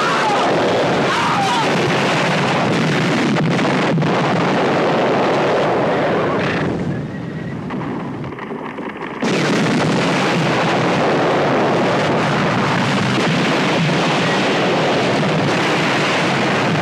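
A volcano roars and rumbles as it erupts.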